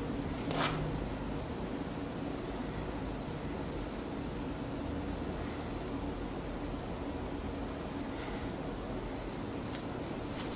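A brush scrapes softly against canvas.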